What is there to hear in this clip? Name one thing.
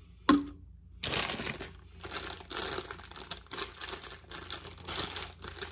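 A plastic snack bag crinkles and rustles loudly.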